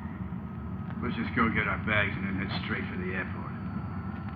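A man speaks briefly in a low, calm voice.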